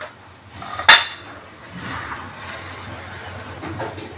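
A clay dish scrapes on a stone countertop.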